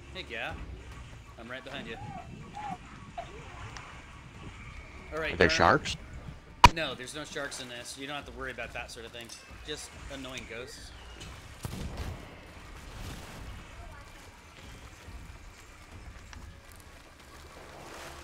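Water splashes and swirls around a swimmer paddling.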